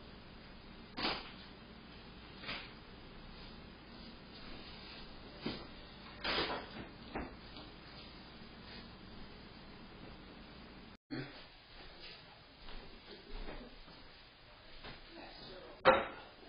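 Things knock and clatter in a nearby room.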